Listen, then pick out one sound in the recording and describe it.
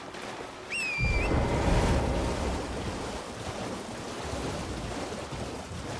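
A horse splashes through shallow water.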